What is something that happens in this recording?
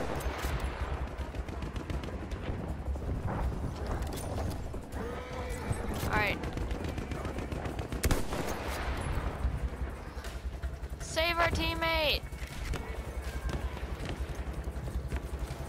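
Gunfire cracks and booms in the distance.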